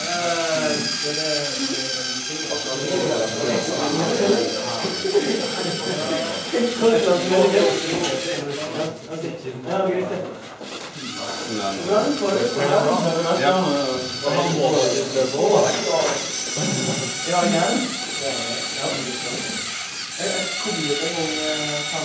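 The small electric motors of a tracked toy robot whir as it drives along.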